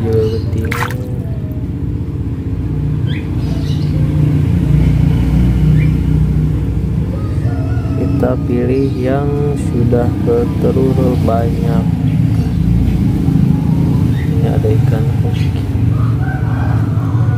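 Water splashes and swishes as a hand sweeps through it.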